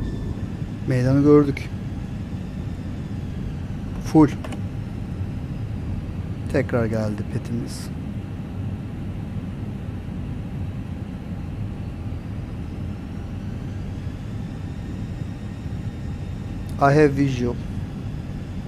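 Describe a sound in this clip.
A man speaks briefly into a headset microphone.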